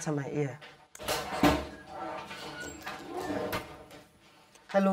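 A door opens with a knock of its handle.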